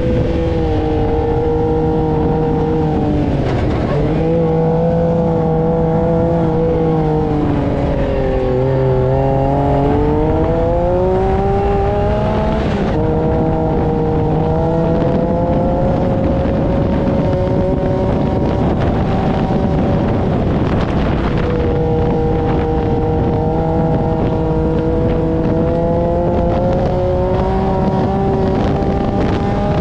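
Wind rushes past, heard up close.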